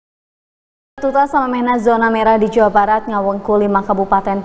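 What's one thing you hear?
A young woman speaks clearly and calmly into a microphone, like a news presenter.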